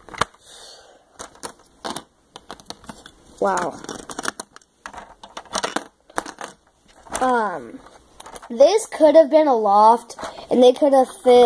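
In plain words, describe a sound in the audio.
Plastic toy pieces click and knock against each other.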